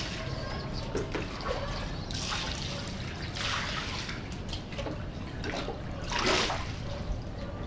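Water splashes as something is scrubbed and rinsed close by.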